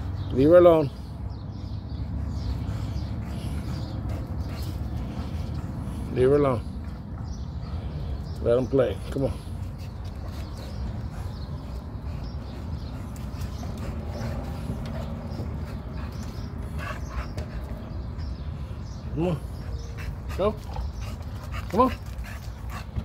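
Dogs whine and yelp in short high bursts.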